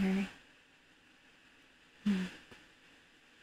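A young woman's voice makes two short exclamations through a microphone.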